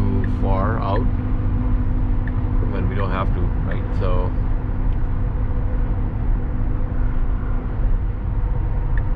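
Tyres roar steadily on a highway from inside a moving car.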